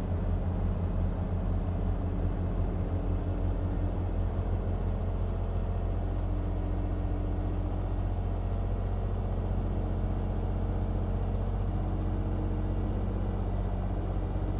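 A truck's diesel engine drones steadily at low speed.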